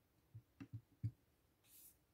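A stamp taps down onto paper a few times.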